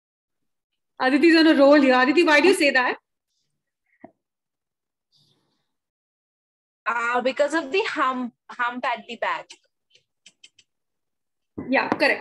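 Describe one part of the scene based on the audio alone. A woman speaks with animation over an online call, in short bursts with pauses.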